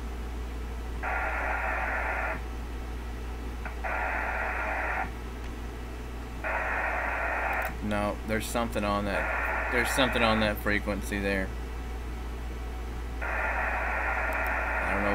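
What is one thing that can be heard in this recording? Digital radio data bursts buzz in short, steady blocks.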